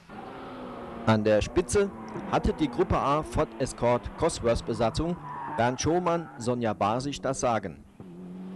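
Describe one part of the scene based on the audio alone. A rally car engine pops and crackles sharply between gear shifts.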